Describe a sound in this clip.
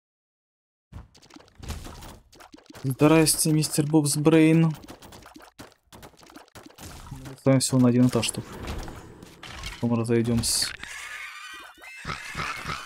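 An older man talks with animation into a microphone.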